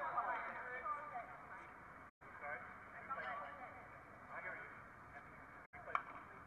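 Two young women talk quietly with each other outdoors.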